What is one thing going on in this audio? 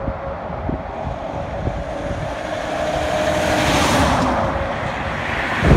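A heavy dump truck roars past close by.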